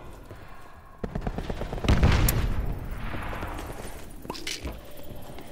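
Gunfire bursts out loudly and echoes.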